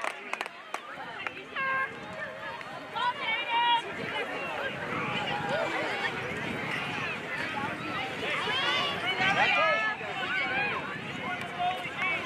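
Children and adults shout and cheer outdoors across an open field.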